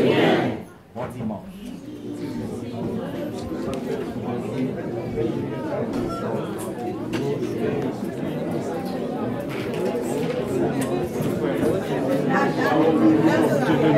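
A crowd of people chatter and greet one another in an echoing hall.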